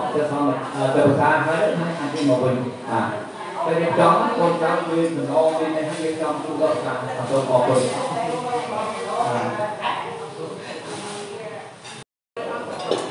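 Several men chant together in low, steady voices close by.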